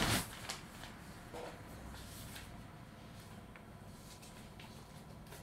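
Paper rustles close to a microphone as pages are turned.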